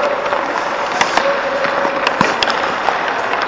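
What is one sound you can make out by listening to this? Blades scrape sharply on the ice close by.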